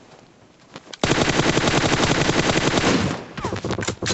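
Rapid gunfire from a game rifle rattles loudly.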